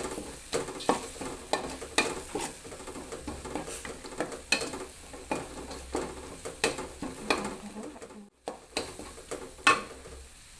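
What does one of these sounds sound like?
A metal spatula scrapes and clinks against a metal wok.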